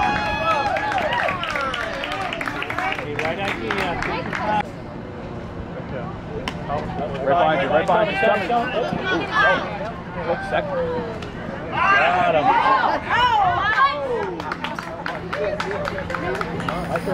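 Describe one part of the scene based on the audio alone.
Children shout and cheer excitedly outdoors.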